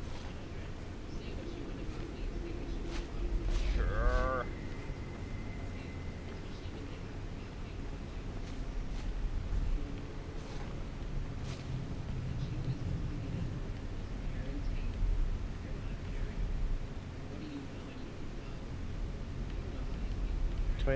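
A man talks into a close microphone.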